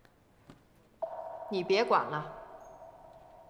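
A phone chimes with a message alert.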